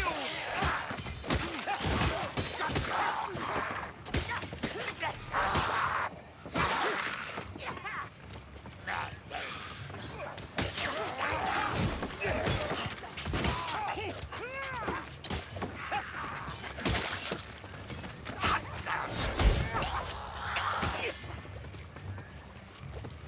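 Blades slash and thud into flesh again and again.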